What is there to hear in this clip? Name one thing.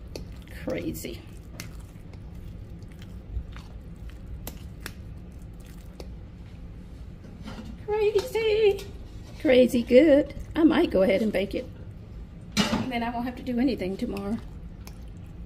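A spoon stirs a thick, wet mixture in a bowl with soft squelching.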